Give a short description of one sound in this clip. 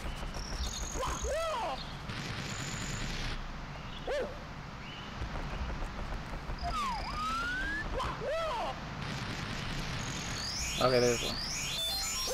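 Springy cartoon jump sound effects chime in short rising and falling chirps.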